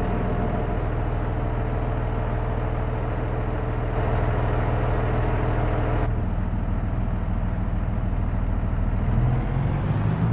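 A tractor engine idles with a steady low rumble.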